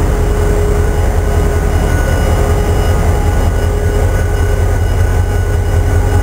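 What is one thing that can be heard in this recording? A diesel locomotive engine rumbles loudly and steadily close by.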